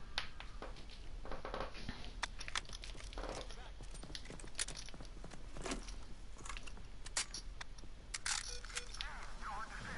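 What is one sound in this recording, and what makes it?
Gunfire cracks in short, sharp bursts.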